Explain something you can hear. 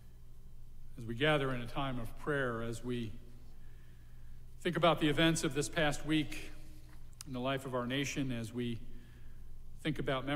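An elderly man speaks calmly through a microphone in a reverberant hall.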